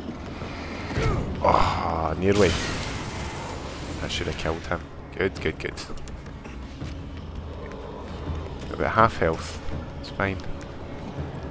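A young man talks excitedly close to a microphone.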